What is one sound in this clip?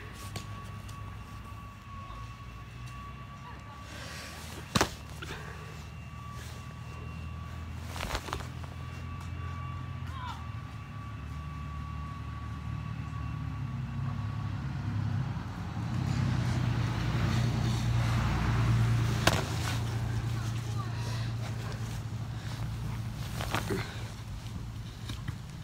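A football smacks into a boy's hands.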